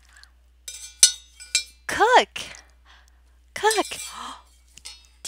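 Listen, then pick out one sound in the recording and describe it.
A plastic spoon scrapes and taps inside a metal pot.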